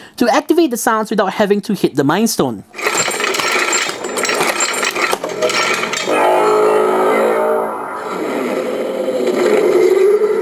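A toy glove plays electronic sound effects through a small speaker.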